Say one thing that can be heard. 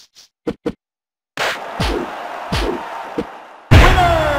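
Punches land with sharp, heavy thuds.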